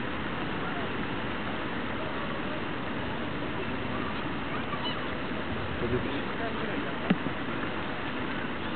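Water laps gently against rocks outdoors.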